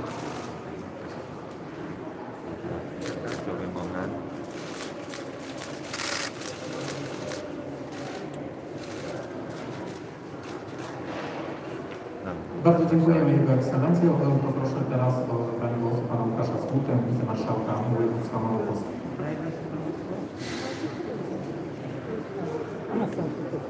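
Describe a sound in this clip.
A man speaks steadily through a loudspeaker in a large echoing hall.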